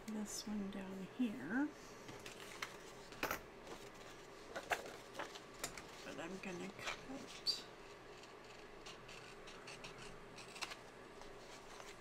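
A small tool taps and clicks against paper and a tabletop.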